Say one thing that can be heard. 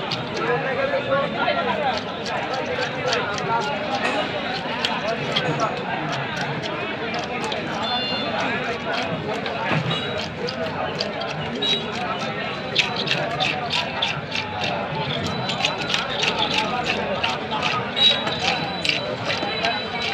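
A knife blade scrapes and taps rapidly.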